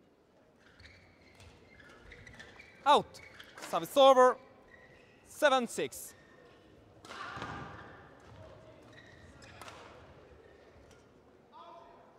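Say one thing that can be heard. Badminton rackets smack a shuttlecock back and forth.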